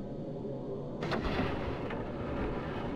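A heavy wooden door is pushed open.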